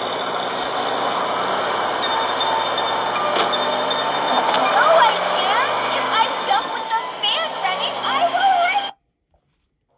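A van engine hums and revs.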